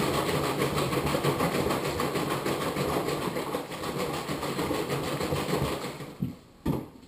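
A plastic bag rustles loudly close by.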